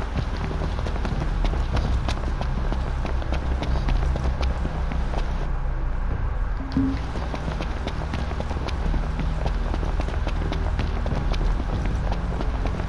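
Footsteps run quickly over gravel and rough ground.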